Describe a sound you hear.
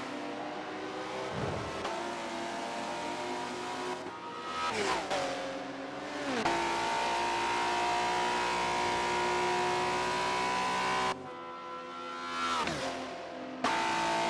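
A car roars past up close, its engine note dropping as it goes by.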